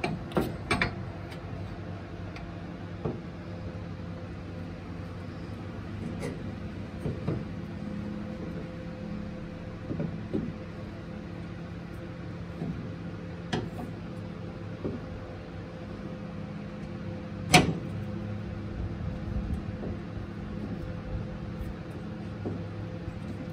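Metal parts clink and knock close by.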